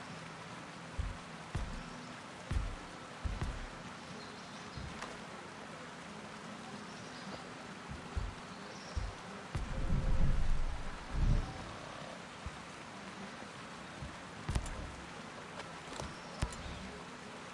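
Menu interface sounds click softly now and then.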